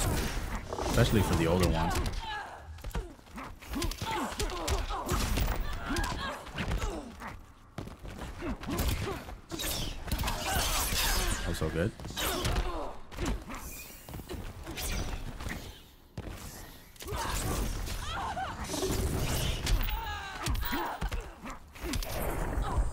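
Punches and kicks land with heavy thuds and cracks.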